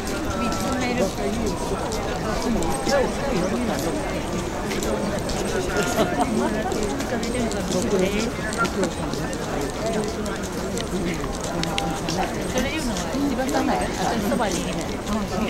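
A large crowd of men and women chatters nearby outdoors.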